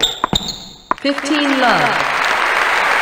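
A crowd applauds and cheers.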